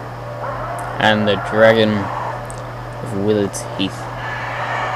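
A dragon lets out loud, shrill screeching roars.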